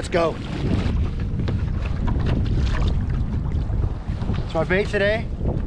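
A man speaks nearby, outdoors in wind.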